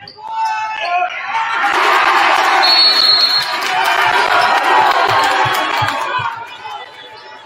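A large crowd cheers and roars in an echoing gym.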